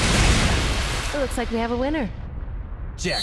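A young woman speaks smugly.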